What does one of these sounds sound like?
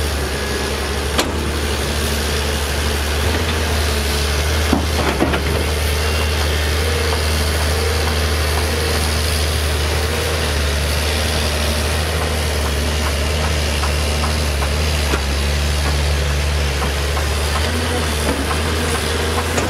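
Rocks and dirt clatter as an excavator bucket digs.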